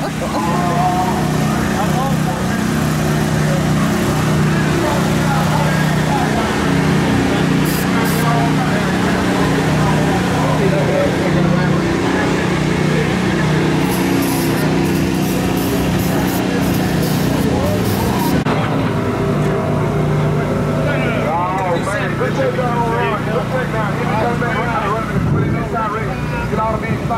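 A car engine idles steadily nearby.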